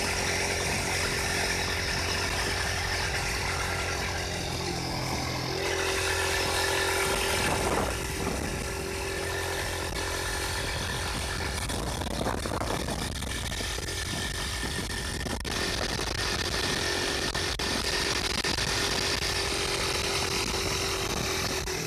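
A 150cc single-cylinder motorcycle engine hums while riding along.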